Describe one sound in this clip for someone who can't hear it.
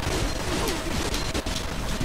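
An explosion bursts with a heavy boom.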